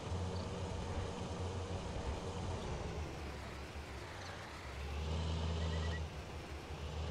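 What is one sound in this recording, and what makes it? A tractor engine rumbles steadily, growing louder near the end.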